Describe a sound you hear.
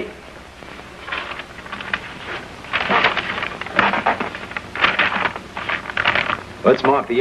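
Papers rustle and crinkle as they are handled.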